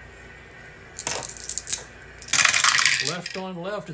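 Dice rattle and clatter onto a wooden tray.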